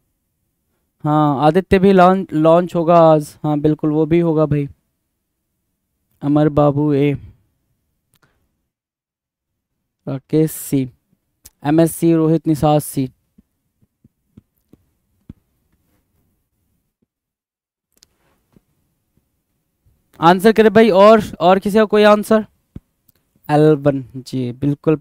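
A man speaks with animation into a headset microphone, in bursts with pauses.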